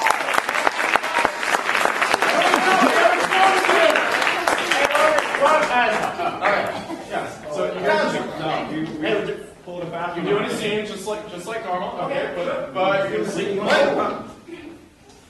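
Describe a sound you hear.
Young men and a young woman talk and shout with animation in an echoing hall.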